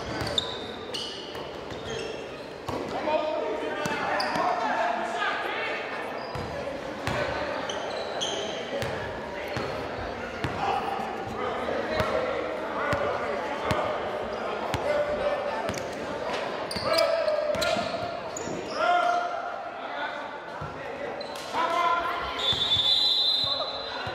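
Young men call out to each other across a large echoing court.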